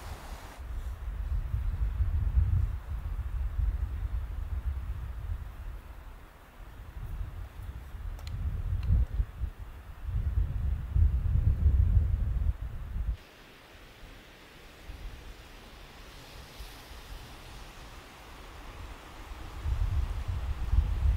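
Wind blows in strong low gusts outdoors.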